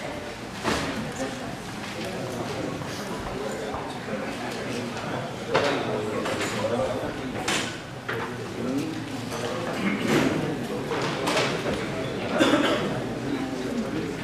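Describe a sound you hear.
Several men and women murmur in the background.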